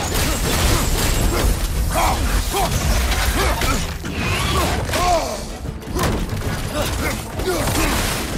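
Weapon blows strike with heavy thuds.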